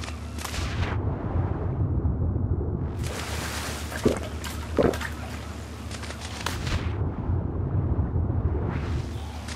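Water gurgles in a muffled, dull way, as if heard from underwater.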